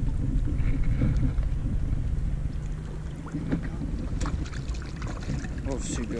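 Water splashes as a fish is released.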